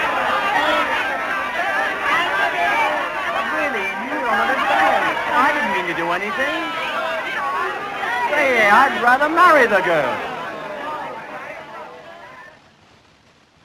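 A crowd chatters and cheers loudly.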